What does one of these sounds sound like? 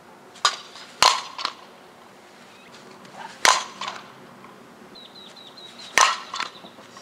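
A bat cracks sharply against a softball, several times.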